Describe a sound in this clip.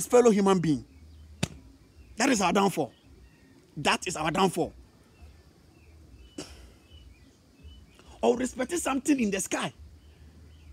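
A young man speaks with animation close to the microphone, in short bursts.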